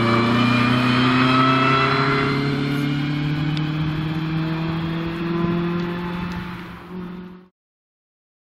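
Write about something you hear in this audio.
A four-cylinder rally car accelerates away and fades into the distance.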